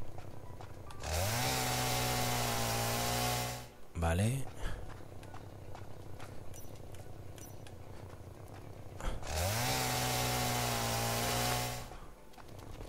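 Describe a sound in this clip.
A chainsaw revs and cuts through wood.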